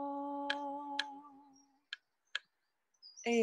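A hand drum is struck a few times.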